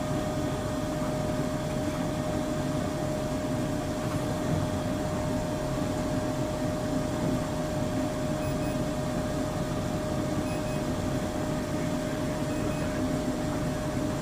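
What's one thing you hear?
A train hums steadily with a constant high whine.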